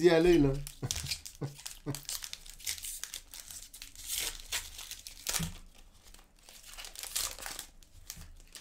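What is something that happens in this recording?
Card packs rustle and crinkle as they are torn open.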